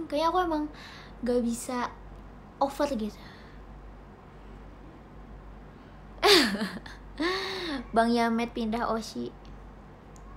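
A young woman talks close to a microphone in short bursts, with animation.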